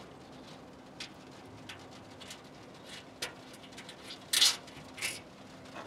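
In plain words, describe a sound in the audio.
Fingers scrape and click against a small metal bolt.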